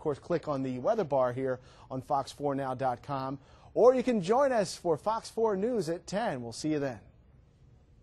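A man speaks clearly and briskly into a microphone.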